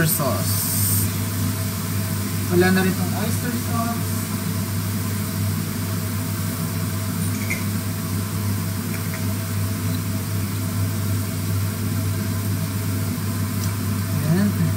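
Sauce pours from a bottle into a sizzling pan.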